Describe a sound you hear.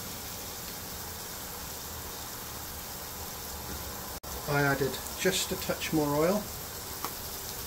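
A sauce simmers gently in a pan.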